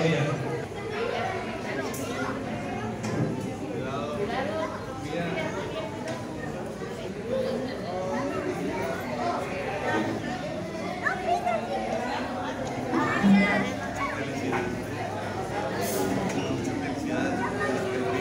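A crowd of men and women chatter nearby in a busy, echoing room.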